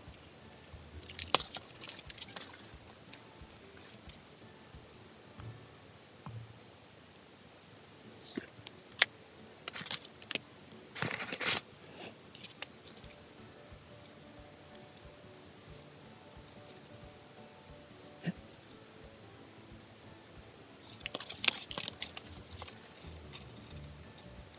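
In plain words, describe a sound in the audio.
Fingers handle a small plastic tube with soft rustles and clicks.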